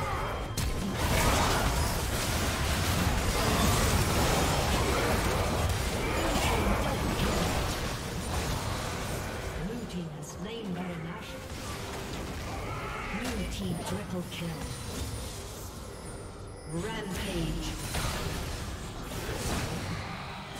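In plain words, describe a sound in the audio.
Game battle effects clash, whoosh and boom in quick bursts.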